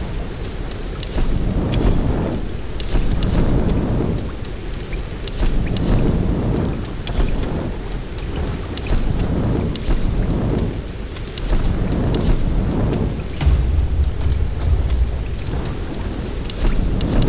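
Short interface clicks tick as menu items change.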